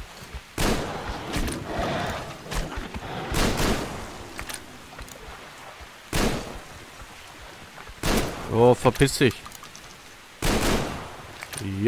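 Gunshots fire in sharp, loud bursts.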